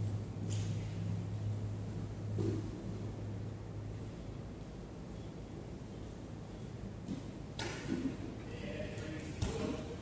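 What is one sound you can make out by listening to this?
Bodies thump and shuffle on mats in a large echoing hall.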